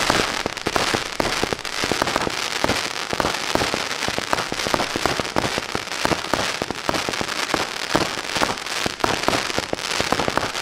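Fireworks launch and burst with rapid popping and crackling.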